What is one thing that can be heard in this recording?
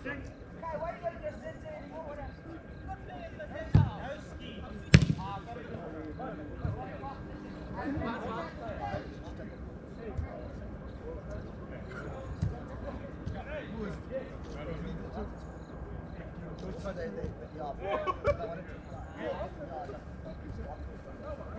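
Young men shout and call to each other across a large open pitch.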